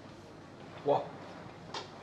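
A cue strikes a billiard ball with a sharp knock.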